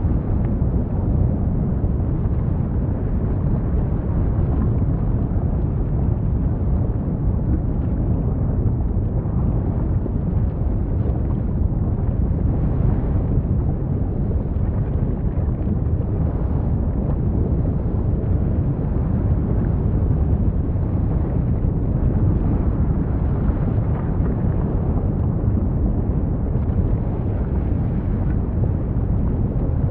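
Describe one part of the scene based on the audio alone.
Lava fountains roar with a deep, steady rumble.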